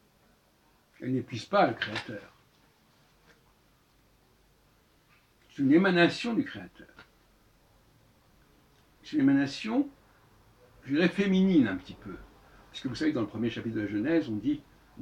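An elderly man speaks close by in short bursts, with pauses.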